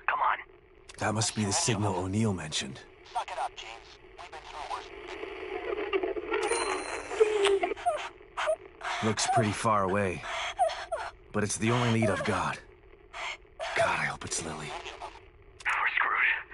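A radio crackles with static.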